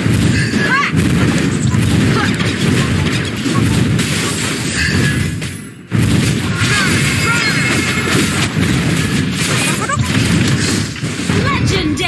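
Fantasy battle sound effects whoosh and clash in quick bursts.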